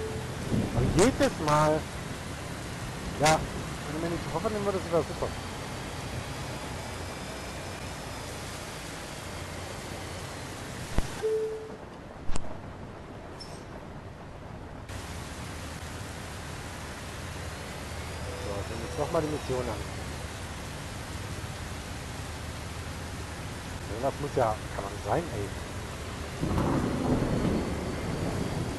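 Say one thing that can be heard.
A bus engine hums steadily as it drives.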